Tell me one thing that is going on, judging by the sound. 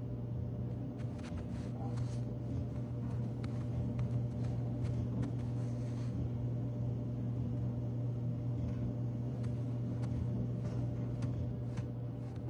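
Footsteps tread softly across a floor.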